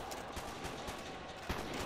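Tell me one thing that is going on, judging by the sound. Footsteps crunch on leafy ground.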